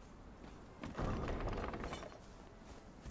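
A heavy wooden gate swings open.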